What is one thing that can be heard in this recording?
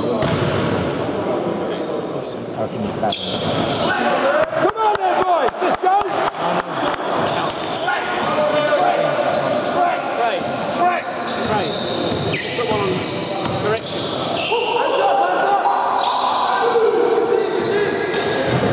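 Sneakers squeak sharply on a hall floor.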